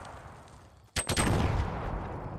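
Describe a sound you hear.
A gun fires sharp shots.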